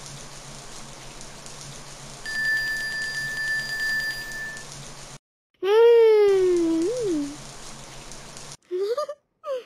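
Water sprays steadily from a shower.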